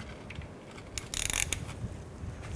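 A metal socket clinks onto a bolt.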